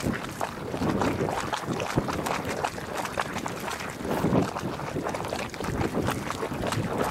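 A hot spring pool bubbles and gurgles steadily outdoors.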